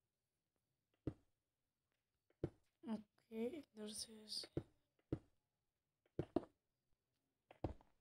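Blocks are placed with short, soft thuds.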